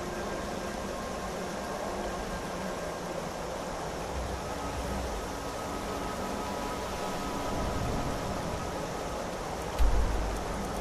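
Water flows gently nearby.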